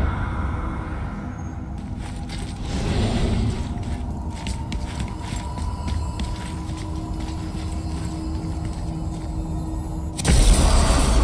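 Heavy footsteps crunch over rocky ground.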